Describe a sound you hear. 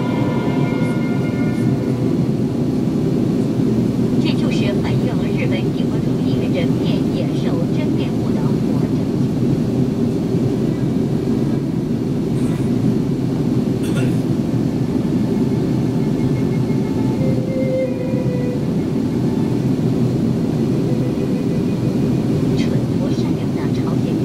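A jet engine roars steadily inside an airliner cabin in flight.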